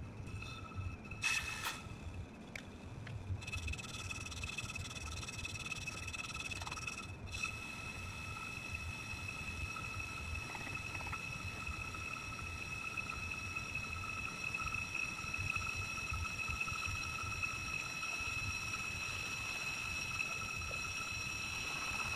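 A cutting tool whines with a high, steady tone as it shaves a spinning brake disc.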